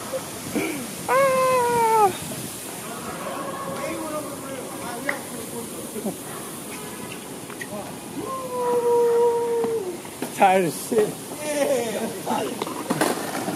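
Young men shout and cheer excitedly nearby.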